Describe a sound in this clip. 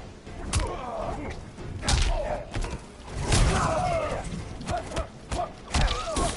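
A chain blade whooshes through the air.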